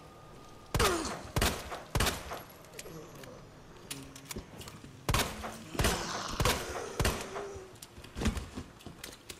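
Gunshots fire in sharp, loud bursts with short echoes.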